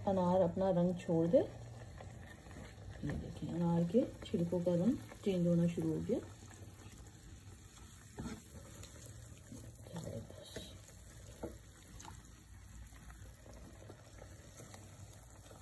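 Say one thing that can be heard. A fork stirs and scrapes through herbs and petals in a pot.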